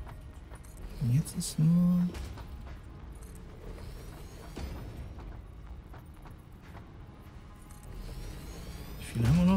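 An electronic tone glides up and down and hums.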